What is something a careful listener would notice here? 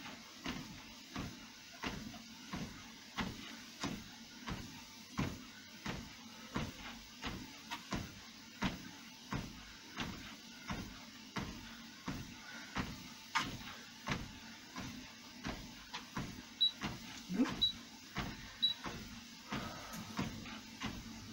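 Footsteps thud steadily on a treadmill belt.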